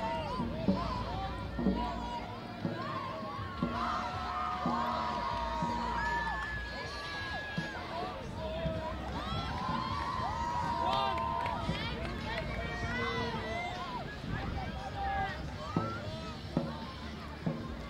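A group of young people shout and cheer outdoors.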